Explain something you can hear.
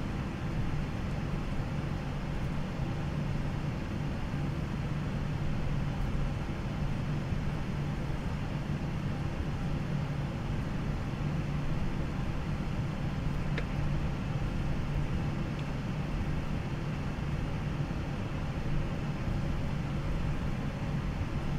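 A jet airliner's engines hum steadily in the cockpit as the plane rolls along the runway.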